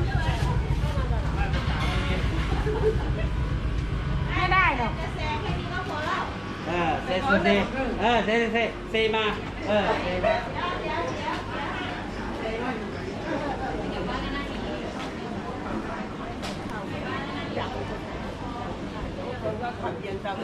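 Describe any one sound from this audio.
Several adults talk and call out nearby, their voices overlapping.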